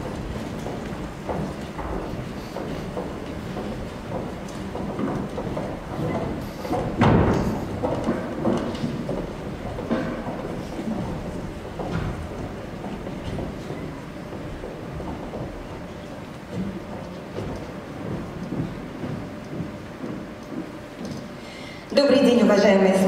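An audience murmurs and chatters softly in a large hall.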